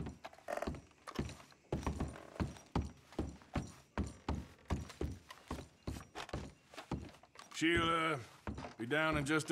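Heavy boots thud steadily on creaking wooden stairs and floorboards.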